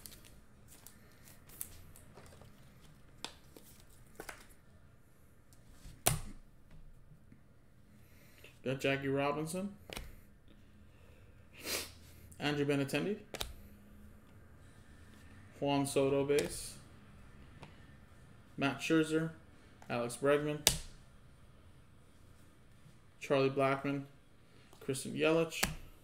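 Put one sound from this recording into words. Cards tap and slide against each other.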